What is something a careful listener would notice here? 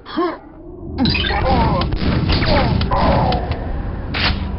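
A gun fires a quick burst of loud shots.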